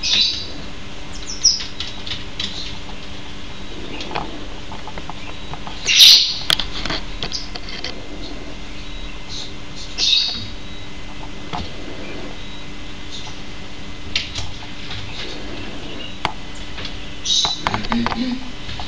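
A small monkey gives short, high-pitched chirps now and then.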